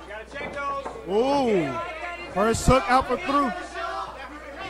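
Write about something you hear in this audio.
Men call out loudly to the fighters.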